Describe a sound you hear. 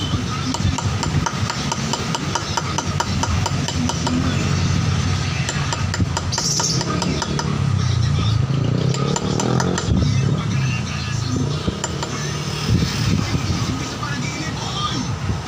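A steel hand tool scrapes in short strokes on polished granite.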